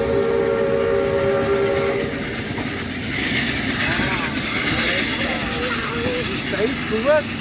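A steam locomotive chuffs steadily.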